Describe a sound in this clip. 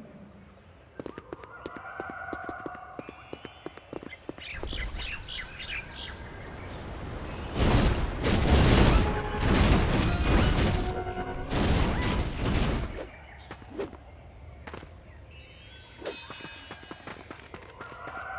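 Quick footsteps patter over grass and dirt.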